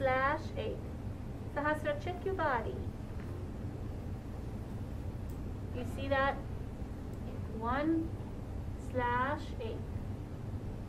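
A woman speaks nearby in short, gentle, sing-song phrases.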